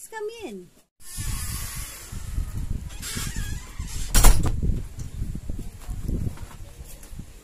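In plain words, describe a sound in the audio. A door opens with a clatter and rustling.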